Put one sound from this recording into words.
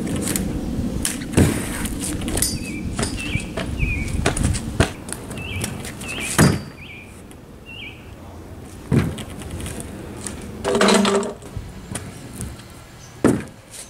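Scooter wheels roll over a board and hard ground.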